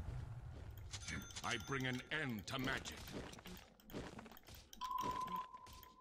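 Game sound effects of a fantasy battle clash and crackle.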